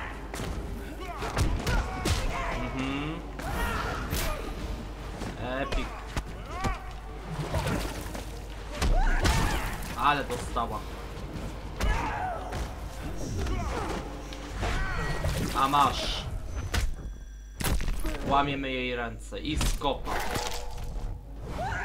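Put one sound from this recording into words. Fighters grunt and cry out as they are hit.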